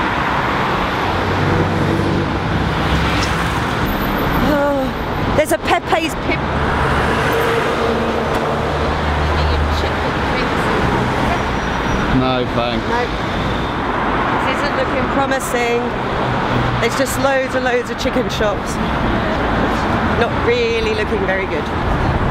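Road traffic rumbles steadily past outdoors.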